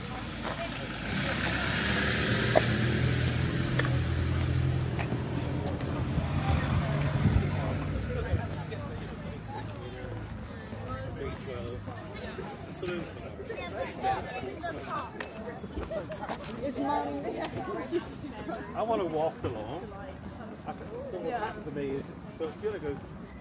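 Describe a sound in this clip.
Footsteps walk on a paved path.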